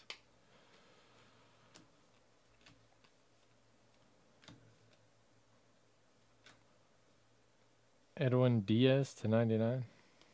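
Trading cards softly rustle and click as they are shuffled by hand.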